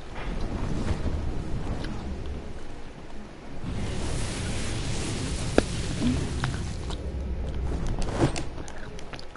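Wind rushes loudly during a glide through the air.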